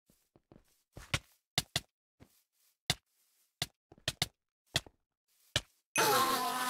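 A sword strikes in quick, sharp blows.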